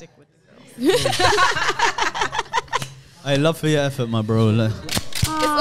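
Several people talk and laugh with animation into close microphones.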